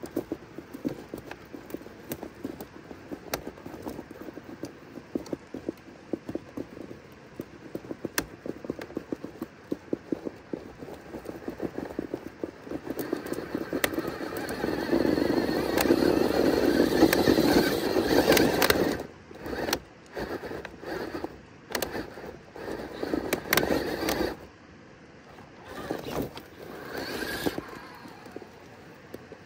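Plastic tyres scrape and knock against rock.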